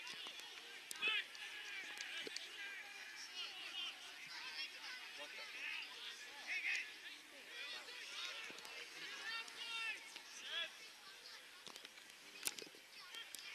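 A football is kicked with a dull thud outdoors.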